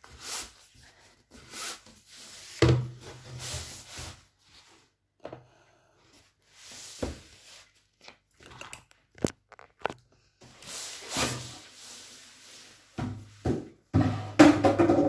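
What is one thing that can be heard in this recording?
A paper roll rustles and scrapes as it is rolled by hand.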